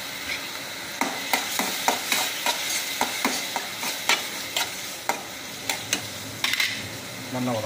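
A metal spatula scrapes and clanks against a pan.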